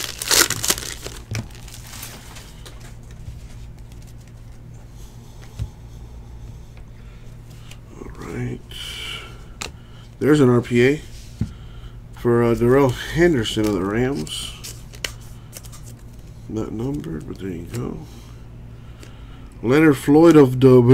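Trading cards rustle and click as hands shuffle through them.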